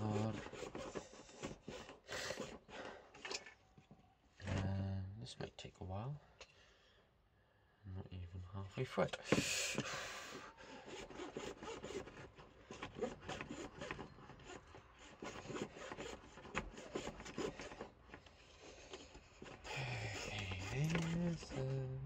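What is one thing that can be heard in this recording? A fine-toothed saw rasps back and forth through hard plastic.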